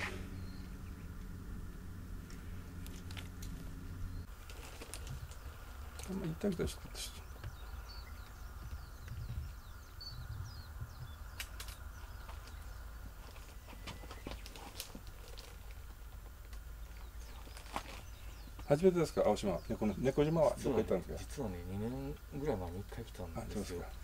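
A cat chews and crunches food close by.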